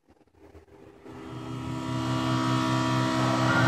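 A racing car engine roars steadily and grows louder.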